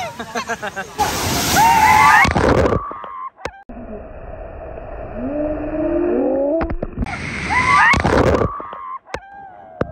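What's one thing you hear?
A heavy gush of water pours down and crashes.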